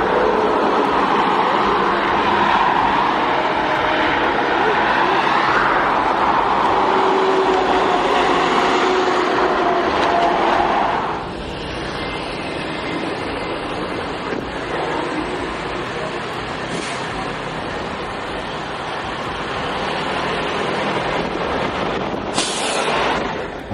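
A heavy truck engine rumbles as it hauls a large load.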